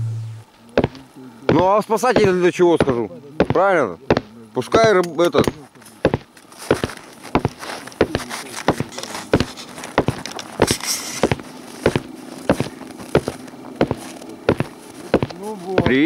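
Footsteps crunch through deep snow at a steady pace.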